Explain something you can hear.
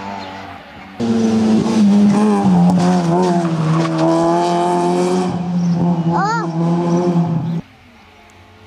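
A rally car engine roars loudly at high revs as the car speeds past.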